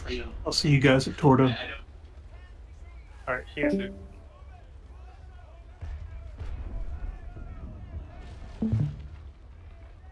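Cannons fire in loud booming volleys.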